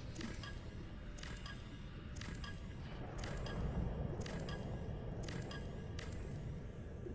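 Short electronic chimes ring out at a steady beat.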